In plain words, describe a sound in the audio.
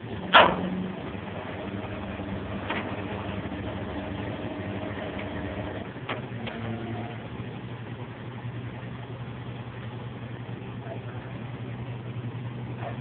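A man talks casually a short distance away.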